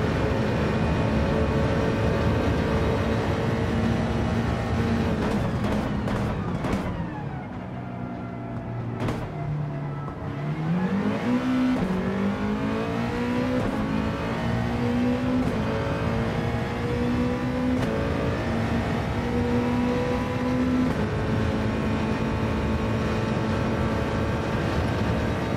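A racing car engine roars at high speed, drops low while braking, then revs up again through the gears.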